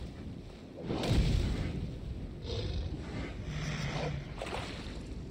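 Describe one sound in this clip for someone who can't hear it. A fire bursts into flame and crackles.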